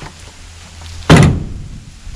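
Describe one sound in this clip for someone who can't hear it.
A wooden ladder knocks against a metal truck bed.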